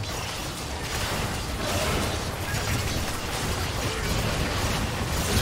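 Spell effects whoosh and crackle during a fantasy battle.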